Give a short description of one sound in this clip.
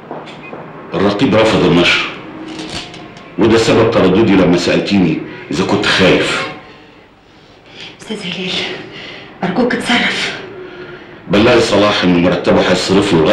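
An elderly man talks calmly.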